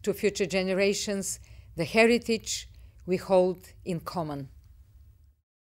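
A middle-aged woman speaks calmly and clearly into a close microphone.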